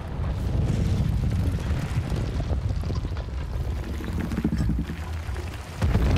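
A huge stone giant heaves itself up with a deep, heavy rumbling.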